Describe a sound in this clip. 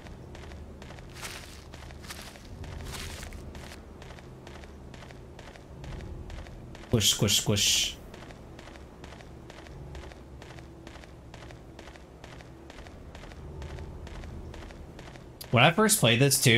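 Footsteps run steadily on a dirt path.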